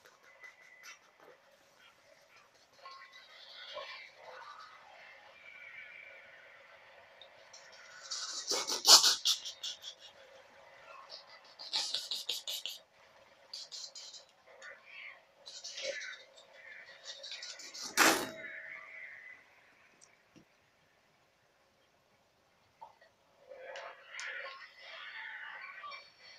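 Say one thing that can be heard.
A video game's music plays through a television speaker.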